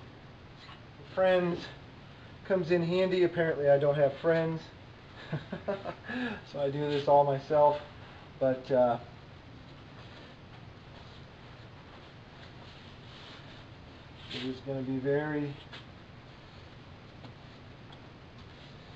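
A fabric cover rustles as it is handled.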